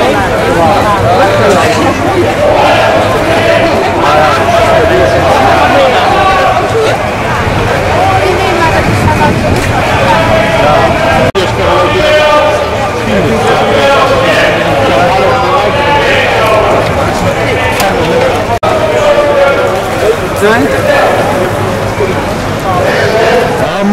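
A crowd of men and women chatter and call out outdoors.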